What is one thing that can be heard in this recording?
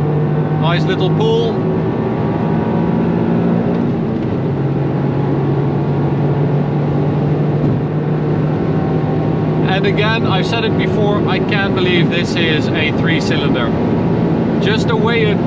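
Wind and tyre noise roar steadily.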